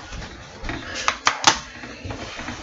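Sharp clicks and knocks sound right up close as something is handled.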